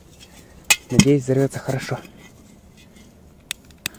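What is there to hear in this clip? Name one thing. A metal canister clunks as it is set down on soil.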